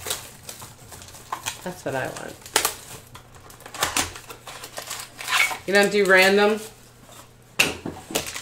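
Cardboard packaging scrapes and taps as it is opened by hand.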